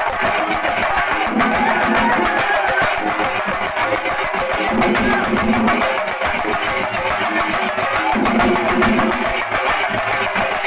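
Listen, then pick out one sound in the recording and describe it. A large crowd of young men cheers and shouts.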